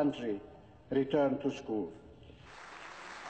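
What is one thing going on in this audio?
A middle-aged man speaks formally into a microphone.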